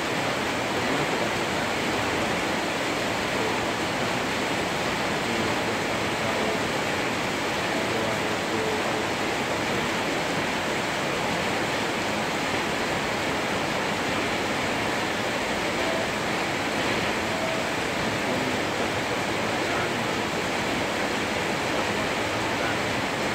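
Heavy rain pours down and drums on metal roofs.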